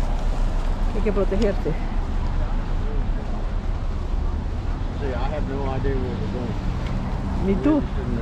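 A woman speaks close by, muffled through a face mask.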